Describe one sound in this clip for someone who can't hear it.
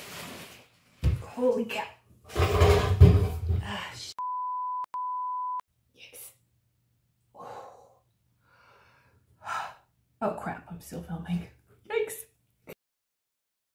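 A middle-aged woman speaks with animation, close to a microphone.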